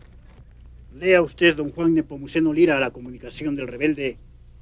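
A man speaks loudly and firmly nearby.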